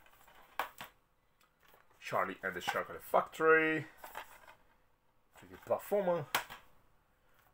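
A plastic game case clicks and rattles in a hand.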